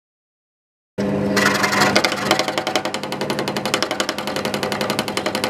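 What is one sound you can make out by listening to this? An electric scroll saw buzzes and rattles rapidly as it cuts through wood.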